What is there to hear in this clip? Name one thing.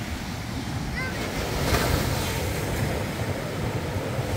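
Waves wash up onto the shore.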